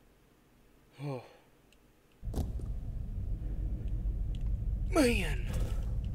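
A young man speaks briefly into a close microphone, with animation.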